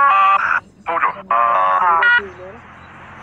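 A young man shouts loudly.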